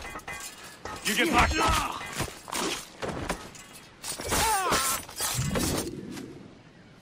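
Swords clash and ring sharply.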